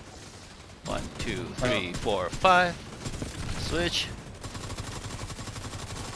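Rifle shots fire in quick bursts.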